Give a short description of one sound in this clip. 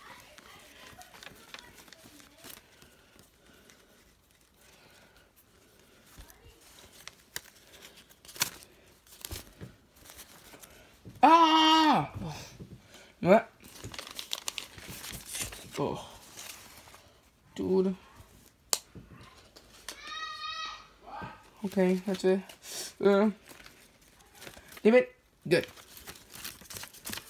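Paper crinkles and rustles in someone's hands.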